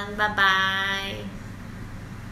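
A young woman speaks cheerfully and brightly, close to a microphone.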